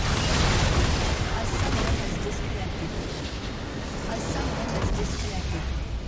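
Game spells and attacks blast and crackle in a busy fight.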